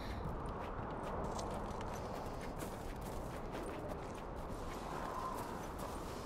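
Footsteps crunch softly through snow.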